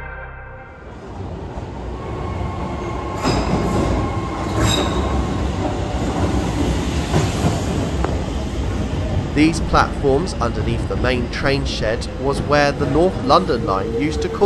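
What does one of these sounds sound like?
A train rumbles into a station and rolls to a stop.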